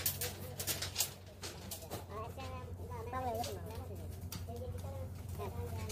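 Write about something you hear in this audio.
Steel wire clinks and scrapes against metal bars as it is twisted tight.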